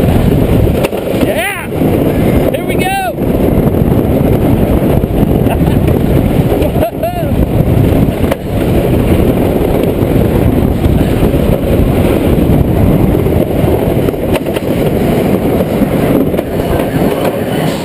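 A roller coaster train rattles and clatters loudly along a wooden track.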